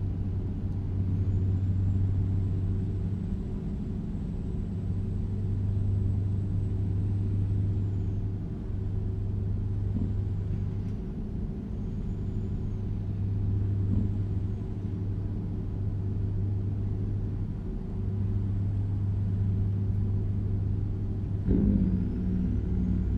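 A truck engine drones low and steady.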